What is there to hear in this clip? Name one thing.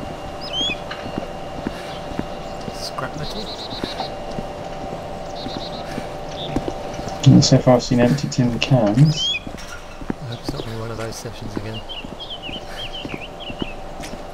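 Footsteps scuff along on concrete.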